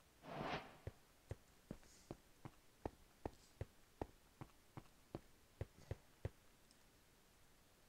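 Footsteps tap quickly and steadily on stone.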